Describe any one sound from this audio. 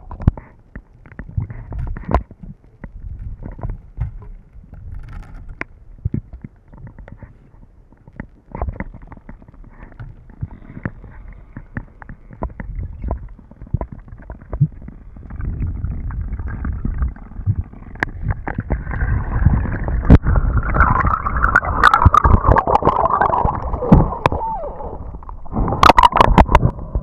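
Water rumbles and crackles close around a microphone held underwater.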